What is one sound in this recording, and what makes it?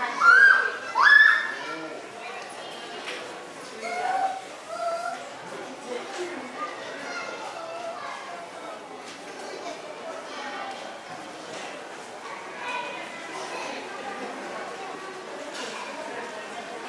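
A crowd of adult visitors murmurs and chatters in a large room.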